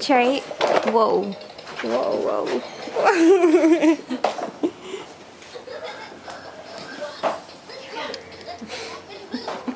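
A baby walker's wheels roll and rattle over carpet.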